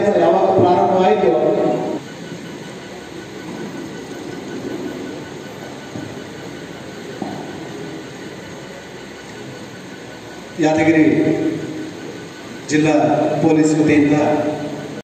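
A man speaks loudly into a microphone.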